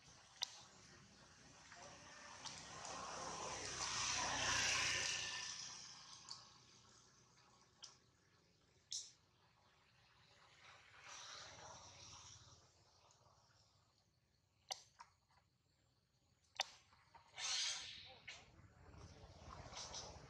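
A small monkey nibbles and chews on a juicy fruit.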